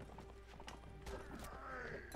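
Horse hooves thud on grass.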